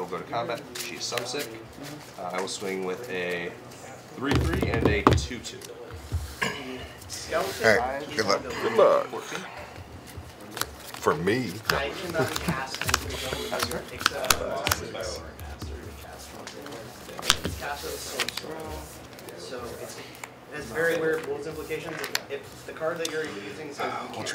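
Playing cards are shuffled and dealt onto a soft mat with light taps and slides.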